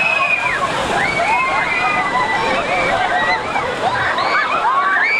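Many people splash loudly through shallow water.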